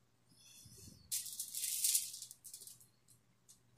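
Aluminium foil rustles as meat is set down on a tray.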